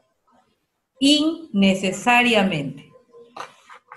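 A young child speaks loudly through an online call.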